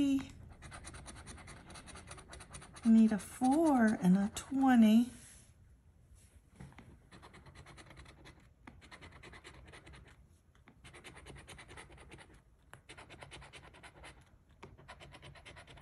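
A coin scratches rapidly across a paper card close by.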